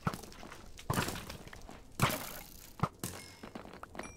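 A sword strikes a zombie with dull thuds.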